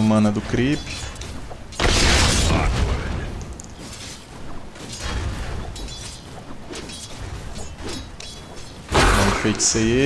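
Game weapons clash and spells burst in a battle.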